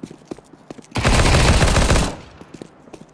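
A rapid burst of gunfire rings out.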